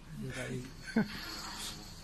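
A young woman laughs softly nearby.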